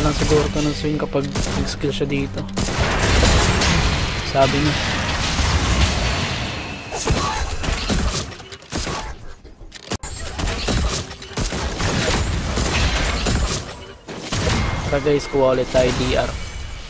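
Fantasy battle sound effects whoosh, crackle and thud in quick bursts.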